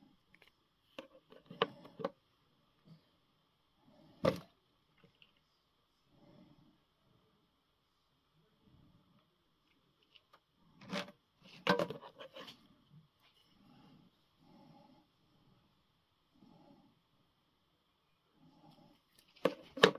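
Small plastic pieces click and tap against each other.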